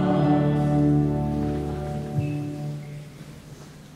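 Two men sing together into microphones.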